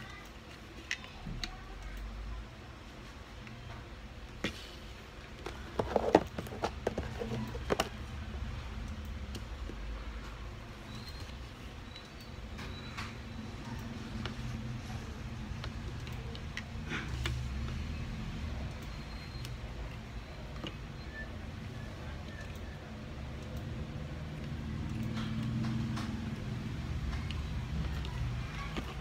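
Plastic toy bricks click and clatter as they are handled.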